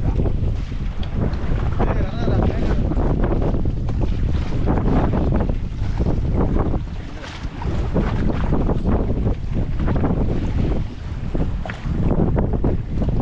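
Men talk and call out to each other over the wind.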